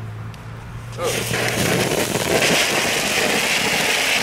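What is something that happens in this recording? A firework fountain hisses and crackles loudly.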